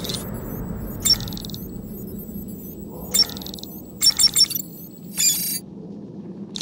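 An electronic device beeps and chirps in short bursts.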